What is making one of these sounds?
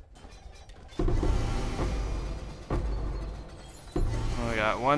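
A chest bursts open with a clatter of spilling loot.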